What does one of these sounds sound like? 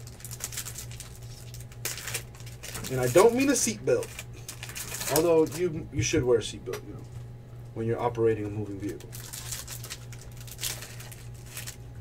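Foil wrappers crinkle and tear open.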